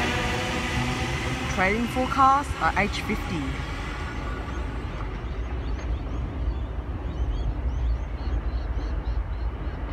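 A second train rumbles faintly as it approaches from far off.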